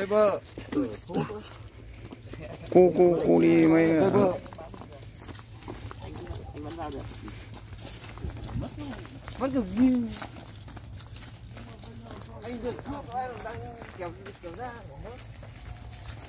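Young men shout and talk excitedly close by.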